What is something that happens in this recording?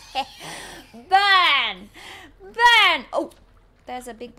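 A woman shrieks and laughs loudly into a microphone.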